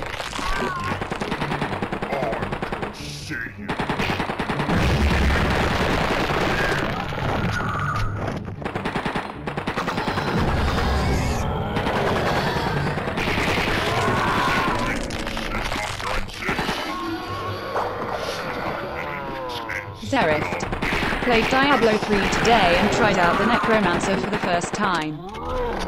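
Gunfire rattles rapidly in a game.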